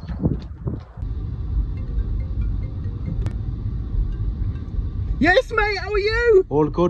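A car engine hums steadily inside the car.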